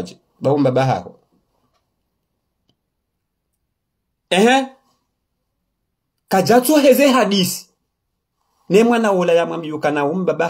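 A man speaks calmly and close to a microphone, with pauses between phrases.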